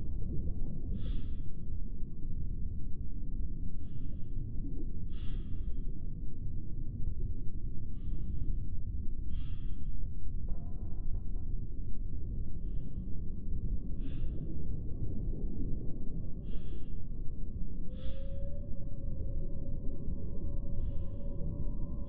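Deep water rumbles steadily around a diving craft.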